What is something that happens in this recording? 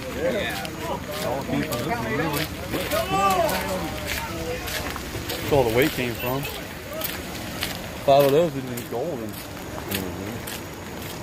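Men talk nearby outdoors with animation.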